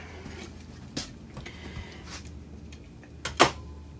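Metal drawer runners clink and clatter against each other.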